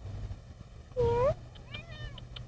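A house cat meows.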